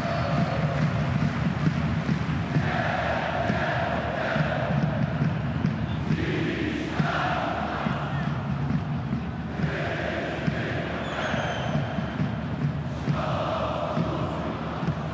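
A large stadium crowd chants and murmurs steadily in the distance.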